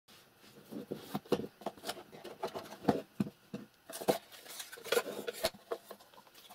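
Cardboard packaging rustles and scrapes close by.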